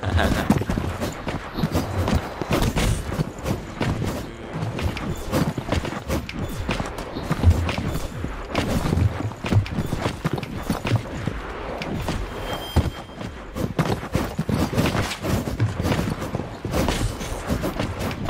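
Energy blasts zap and crackle.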